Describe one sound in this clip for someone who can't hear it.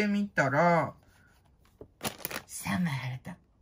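Paper leaflets rustle as a hand handles them.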